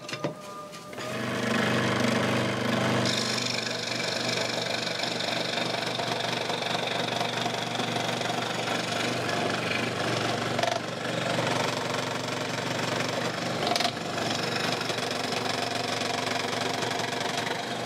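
A scroll saw hums as it cuts through wood.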